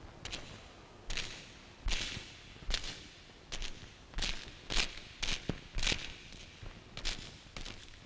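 Footsteps echo slowly in a long hallway.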